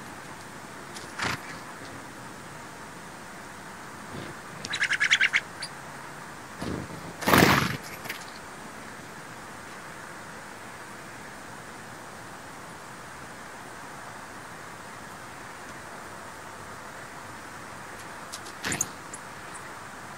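Small birds chirp in quick trills nearby.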